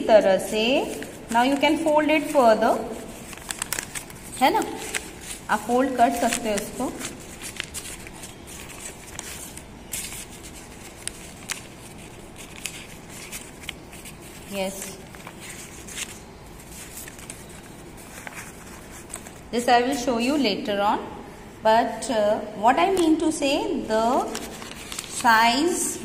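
Paper rustles and crinkles as it is folded and unfolded.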